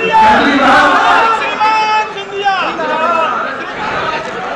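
A man shouts excitedly close by.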